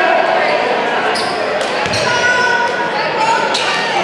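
Sneakers squeak on the hardwood floor.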